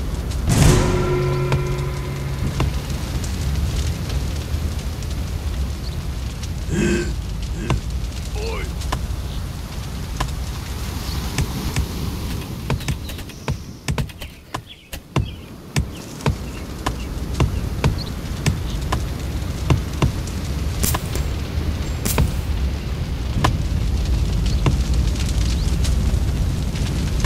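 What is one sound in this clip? A fire crackles steadily.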